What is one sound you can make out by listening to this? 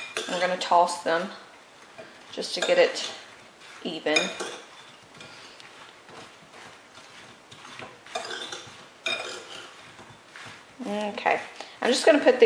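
A spoon stirs soft fruit in a ceramic bowl, clinking lightly against the side.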